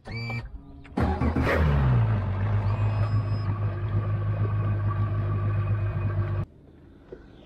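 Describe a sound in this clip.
A boat engine starts up and idles with a steady low rumble.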